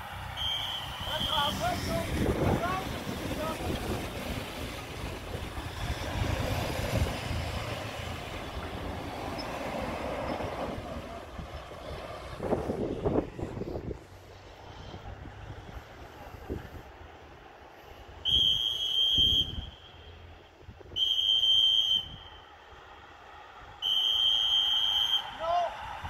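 A pack of racing bicycles whirs past.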